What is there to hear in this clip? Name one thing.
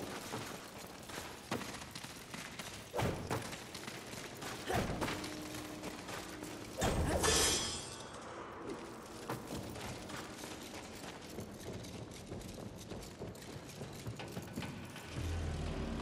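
Footsteps thud on stone and wooden boards.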